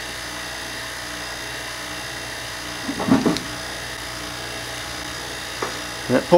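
An electric arc buzzes and crackles with sharp snaps.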